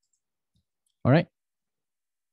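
A young man says a brief word into a close microphone.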